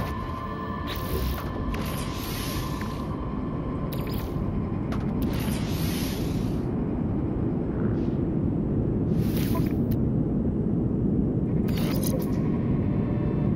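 Soft beeps and clicks come from a game menu.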